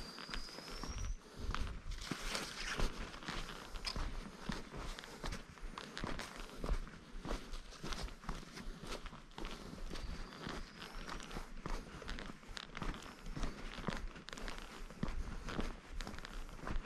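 Wind blows in gusts across the outdoors.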